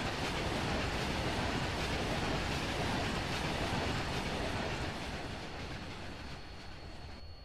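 A train rumbles slowly along the tracks and fades as it moves away.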